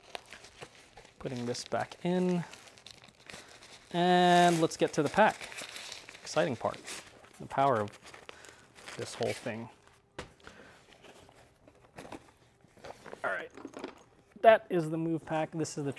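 A padded fabric case rustles as it is lifted and set in a bag.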